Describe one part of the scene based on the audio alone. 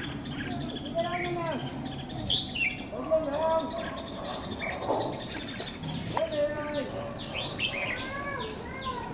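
Small birds chirp and whistle close by, in short repeated calls.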